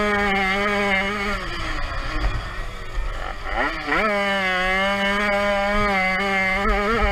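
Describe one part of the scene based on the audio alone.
A motorbike engine revs loudly close by, dips for a moment, then revs hard again.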